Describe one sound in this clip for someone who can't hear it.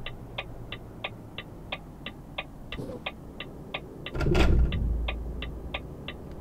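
A truck engine hums low and steadily.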